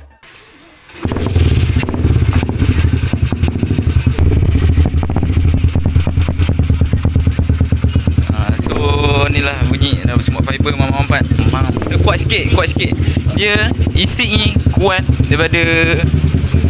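A motorcycle engine idles loudly with a deep, rapid rumble.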